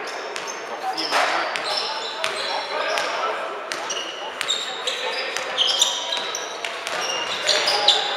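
A basketball is dribbled on a gym floor, thudding in a large echoing hall.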